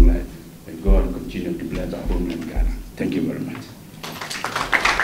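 A man speaks into a microphone close by.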